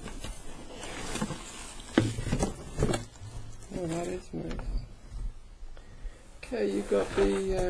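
Plastic wrapping crinkles as it is pulled and handled.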